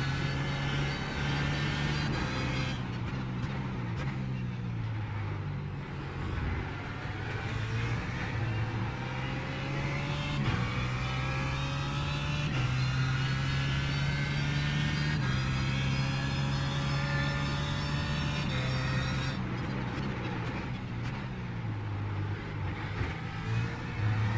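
A racing car engine roars, revving up through the gears with sharp shifts.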